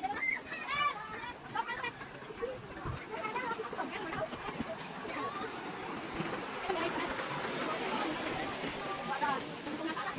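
Water rushes along a concrete channel.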